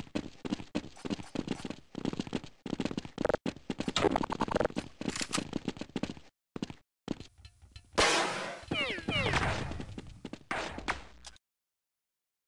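Footsteps tread on a hard stone floor.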